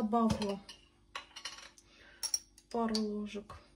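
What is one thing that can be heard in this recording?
A spoon clinks against a small glass jar.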